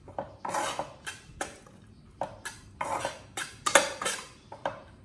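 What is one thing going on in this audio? A metal spatula scrapes and clatters against a pan as food is stirred.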